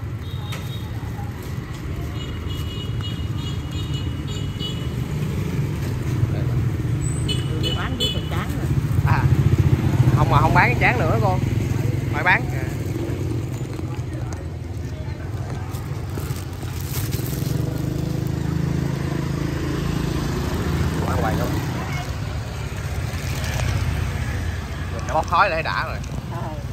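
Motorbike engines hum steadily as they pass along a street.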